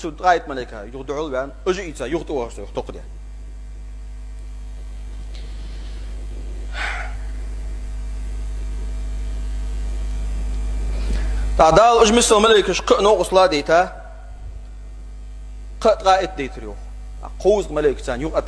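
A man preaches with animation, pausing between phrases.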